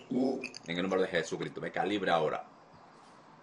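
A young man speaks in a strained, tearful voice over an online call.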